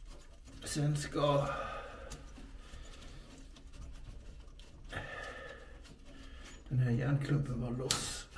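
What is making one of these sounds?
A metal shaft joint clunks and rattles as it is twisted by hand.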